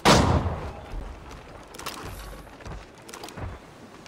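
A heavy iron cannon is hoisted with a metallic clank.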